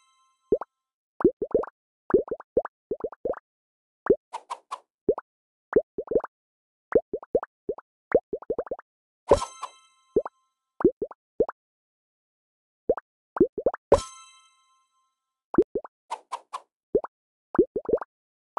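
Short bubbly pops sound as cake slices drop onto plates.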